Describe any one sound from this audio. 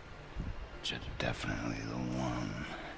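Another man speaks calmly in reply.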